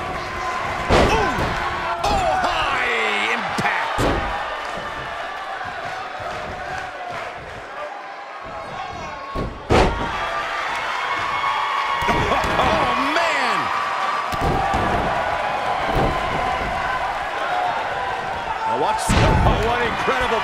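Heavy bodies slam hard onto a wrestling ring mat.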